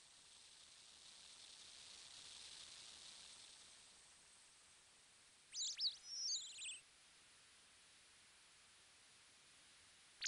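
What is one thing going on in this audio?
Water of a river flows gently.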